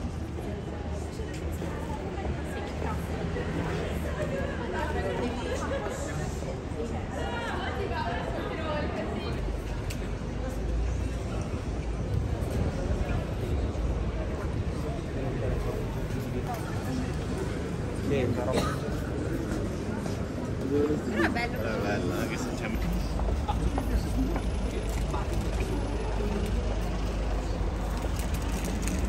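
Traffic and a busy street hum steadily outdoors.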